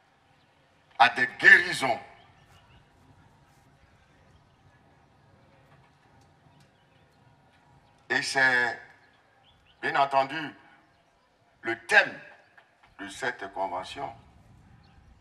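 A man preaches with animation into a microphone, heard through loudspeakers in short bursts.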